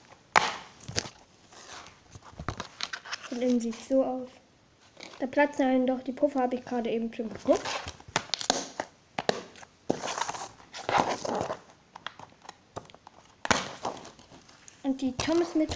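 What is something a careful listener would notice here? A plastic disc case clicks and rattles as it is handled.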